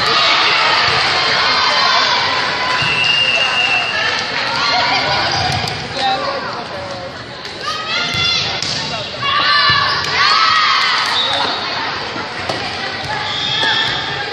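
Sneakers squeak on a hardwood gym floor.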